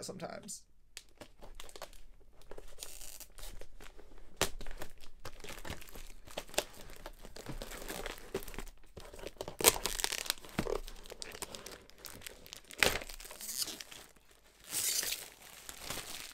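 Plastic packaging rustles and crinkles under hands.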